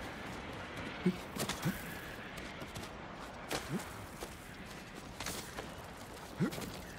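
Boots scuff and thud on rock as someone scrambles up a slope.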